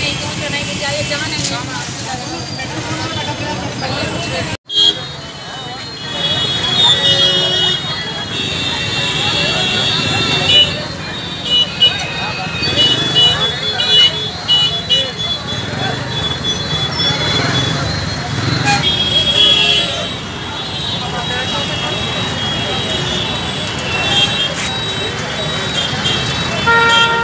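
A crowd of men talks and shouts outdoors.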